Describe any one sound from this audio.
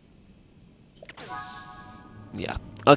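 A bright magical chime shimmers and swells.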